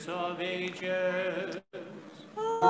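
A man chants a prayer in a low voice.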